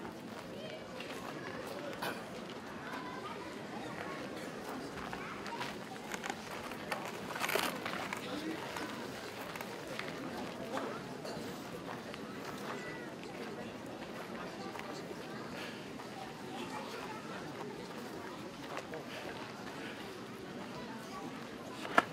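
A large outdoor crowd murmurs and chatters steadily.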